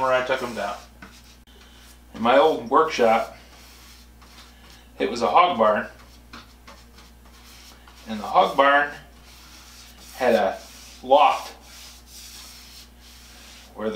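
A middle-aged man talks calmly in short phrases, close by.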